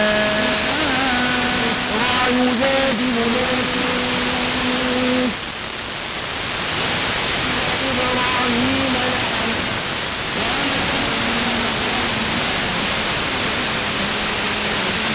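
A voice plays from a car radio through a small speaker.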